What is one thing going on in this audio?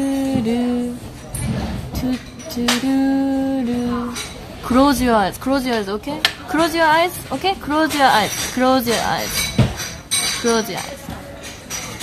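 A young woman talks animatedly close to a microphone.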